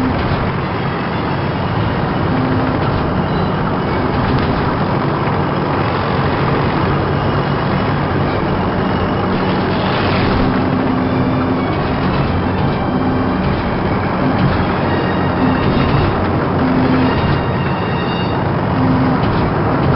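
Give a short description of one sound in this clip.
Tank tracks clatter over the ground.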